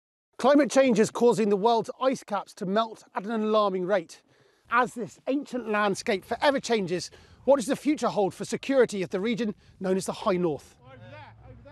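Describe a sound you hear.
A young man speaks calmly and clearly to a microphone.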